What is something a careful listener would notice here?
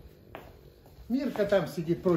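An elderly man speaks nearby.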